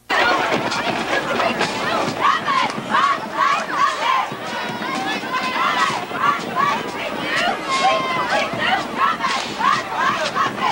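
Young men shout across an open field.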